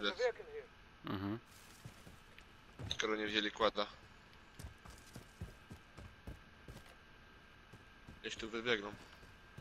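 Footsteps tread over dirt and grass.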